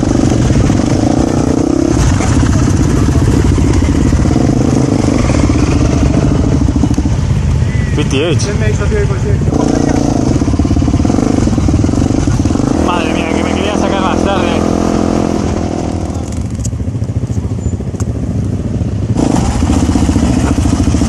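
A motorcycle engine idles and rumbles up close.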